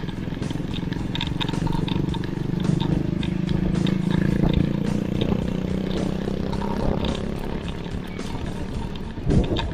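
A motorcycle engine hums nearby and fades.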